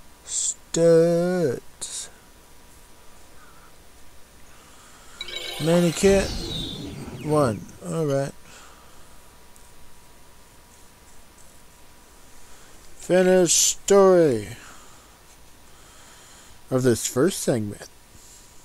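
Short electronic menu tones sweep down in pitch, several times.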